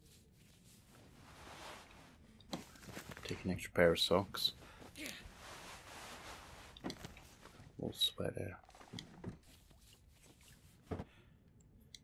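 Wooden drawers slide and knock as they are opened and searched.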